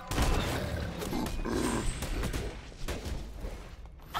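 Magical blasts and heavy hits burst during a fight.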